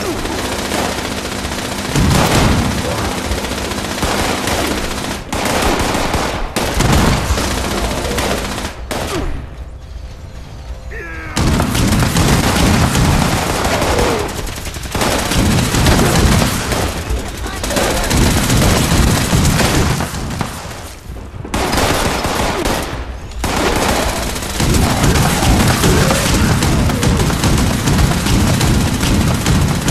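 A heavy machine gun fires in long rapid bursts.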